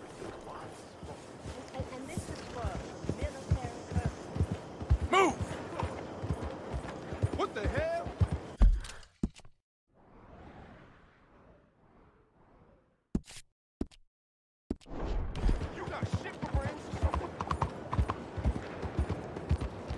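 A horse's hooves clop steadily at a gallop.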